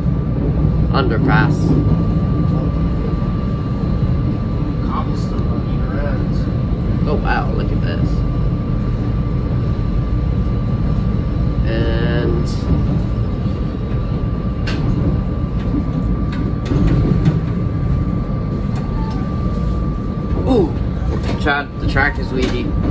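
Train wheels squeal on the curved track.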